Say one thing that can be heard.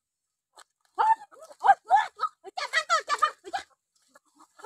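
A chicken squawks loudly as it is caught.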